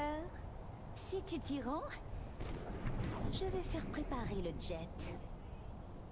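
A young woman speaks in a haughty, measured voice.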